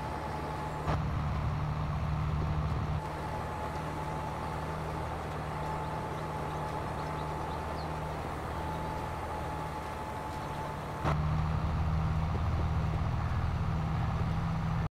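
A tractor engine hums steadily, growing louder now and then.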